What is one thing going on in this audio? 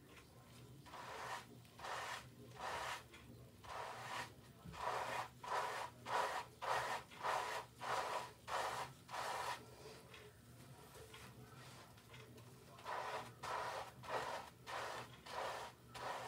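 Foamy lather squishes in rhythmic strokes as hands scrub wet hair.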